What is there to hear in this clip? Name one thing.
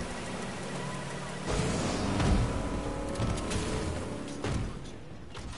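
A motorboat engine drones over the water.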